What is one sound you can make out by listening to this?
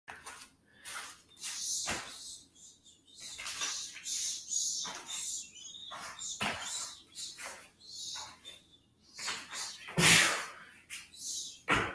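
Bare feet thump and slide on a rubber mat floor.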